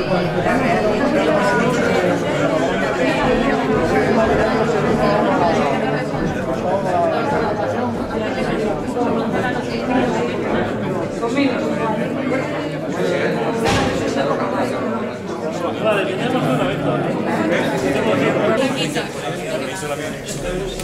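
A crowd of men and women chatters in an echoing room.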